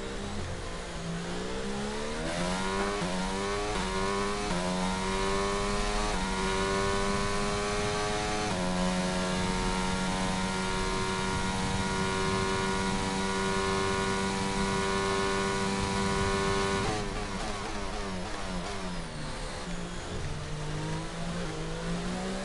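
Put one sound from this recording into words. A racing car engine screams, climbing in pitch through quick gear changes, holding a steady high whine, then dropping as it slows.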